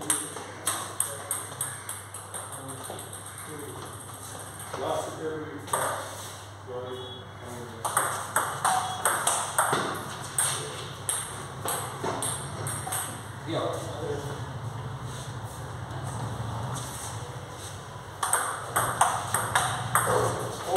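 Table tennis balls click rapidly against paddles and tables.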